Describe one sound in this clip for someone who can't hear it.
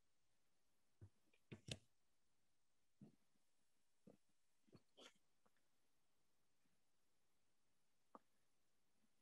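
A tool scrapes lightly on a clay pot.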